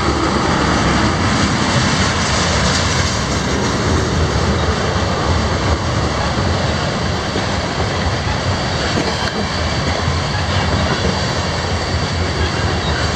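A freight train rumbles past close by, its wheels clattering steadily on the rails.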